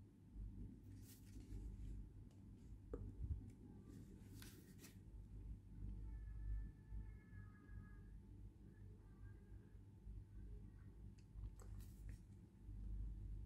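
The paper pages of a booklet rustle as they are flipped.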